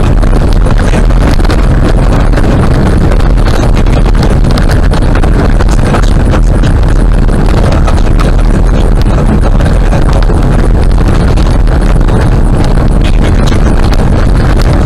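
A car drives fast along a rough gravel road with a steady loud rumble.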